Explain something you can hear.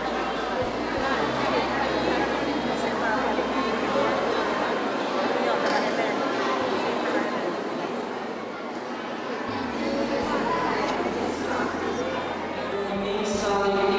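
A large crowd of adults and children chatters in an echoing hall.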